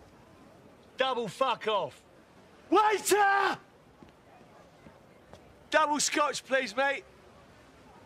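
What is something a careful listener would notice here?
A young man calls out loudly and cheerfully up close.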